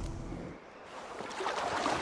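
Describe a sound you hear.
Water splashes as someone wades through a pond.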